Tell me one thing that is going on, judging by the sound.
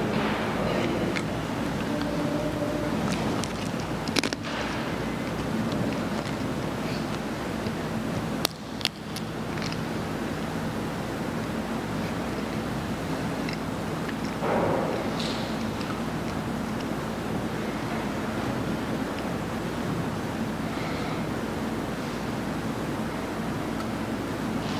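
A man speaks quietly and steadily.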